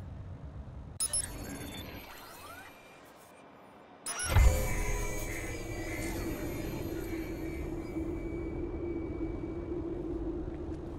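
A digital whoosh and glitchy hum sweep in.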